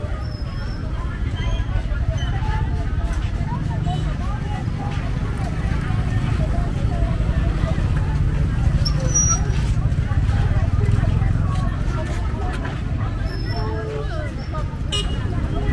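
A motorbike engine idles and rumbles close by.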